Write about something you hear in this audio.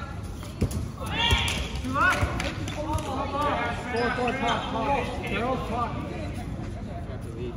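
Young players call out and shout to each other.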